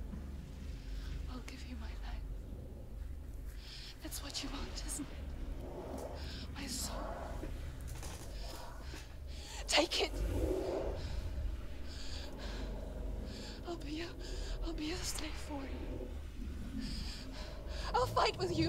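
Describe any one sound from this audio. A young woman speaks close up in a strained, trembling voice.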